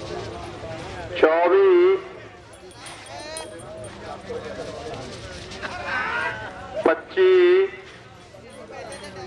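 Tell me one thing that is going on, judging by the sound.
Men in a distant crowd shout loudly outdoors.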